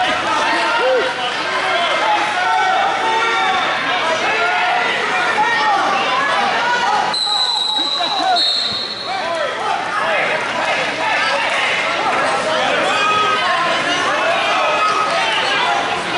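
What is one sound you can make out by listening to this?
A crowd of people talk and shout in a large echoing hall.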